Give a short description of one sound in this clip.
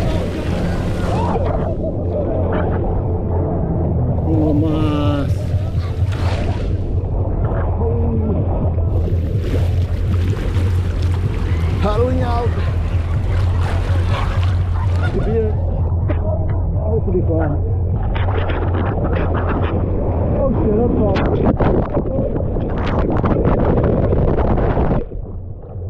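Waves wash and churn around a swimmer.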